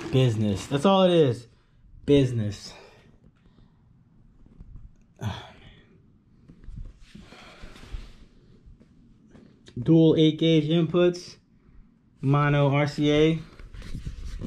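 A man talks close by, calmly and in short bursts.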